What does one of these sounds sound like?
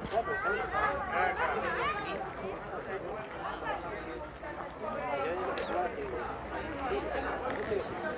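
Several young people chatter and call out at once nearby, outdoors.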